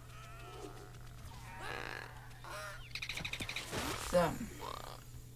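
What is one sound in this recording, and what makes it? Birdlike creatures squawk and chirp.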